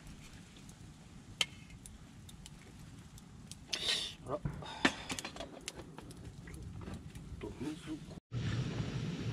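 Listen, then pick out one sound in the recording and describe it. A wood fire crackles and pops nearby.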